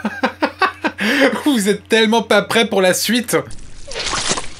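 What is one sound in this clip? A young man talks with animation, close by.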